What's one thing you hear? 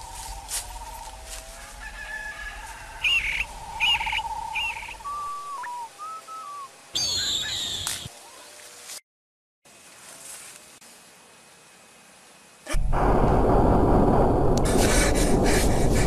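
Bamboo leaves rustle in the wind.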